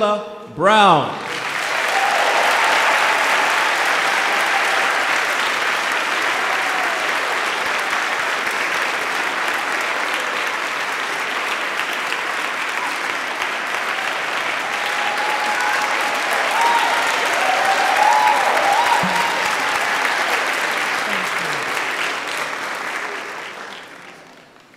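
A large crowd applauds loudly.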